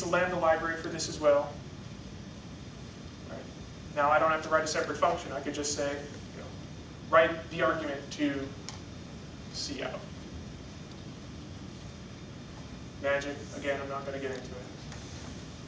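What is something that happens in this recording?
A man speaks calmly in short bursts, with pauses.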